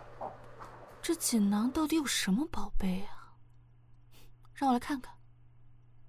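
A young woman speaks softly and wonderingly, close by.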